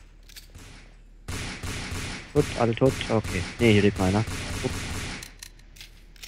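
Gunshots fire rapidly in a corridor.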